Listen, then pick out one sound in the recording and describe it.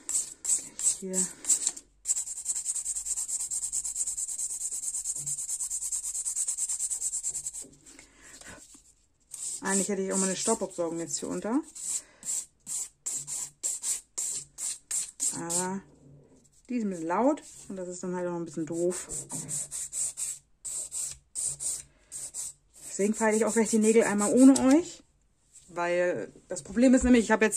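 A nail file rasps quickly back and forth against a long fingernail.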